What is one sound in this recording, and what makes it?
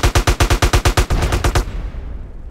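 A bus explodes with a loud blast.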